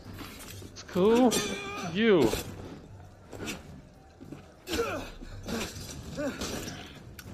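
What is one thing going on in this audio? Swords clash and ring.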